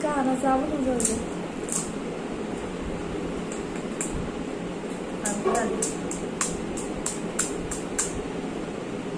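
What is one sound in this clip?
Crisp shells crack and crunch between fingers.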